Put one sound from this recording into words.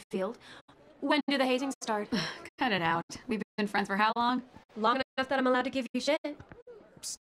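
A young woman answers with animation.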